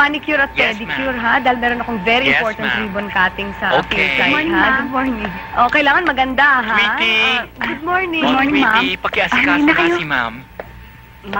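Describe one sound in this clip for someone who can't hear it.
A woman talks loudly and with animation, close by.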